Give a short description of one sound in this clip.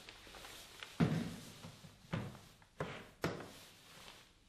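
Plastic case latches snap open with sharp clicks.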